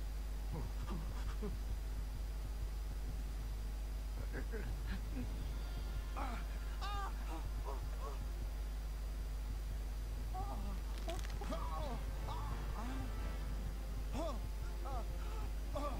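A man groans and pleads in pain.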